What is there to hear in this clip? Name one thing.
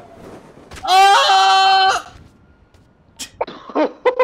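A body lands on the ground with a heavy thud.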